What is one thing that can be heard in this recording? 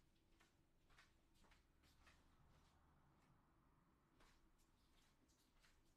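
Footsteps tap faintly on a hard floor nearby.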